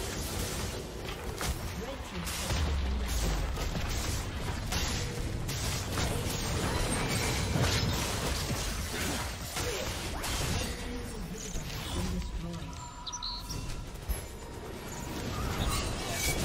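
Magic blasts and impacts crackle and boom in a fast fight.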